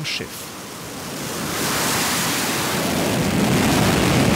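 A jet engine roars loudly and builds in strength.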